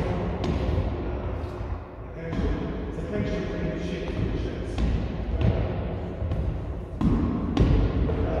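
A stick strikes a rubber tyre with dull thuds.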